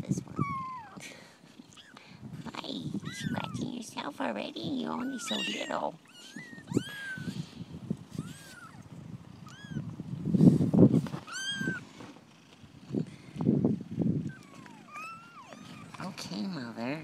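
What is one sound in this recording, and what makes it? Fur and fabric rustle close by as a hand handles the puppies.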